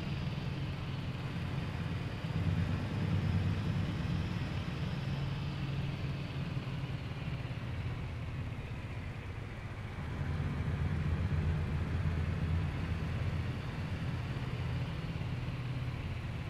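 A diesel truck engine drones under load, heard from inside the cab.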